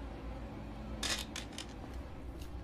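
A gun drops and clatters onto a wooden floor.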